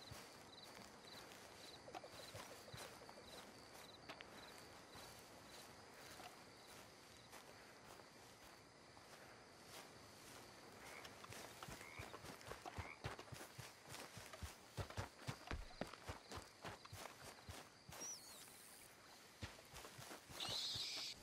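Footsteps thud on grass and dirt.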